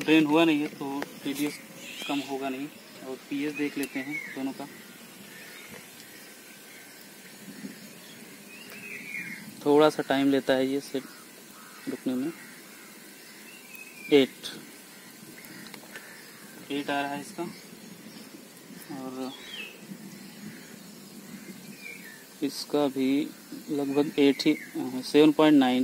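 A young man talks calmly close by, in short bursts with pauses.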